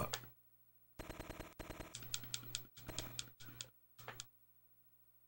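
Short electronic blips sound as game text prints out.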